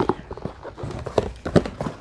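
A cardboard box rustles and thumps as it is handled.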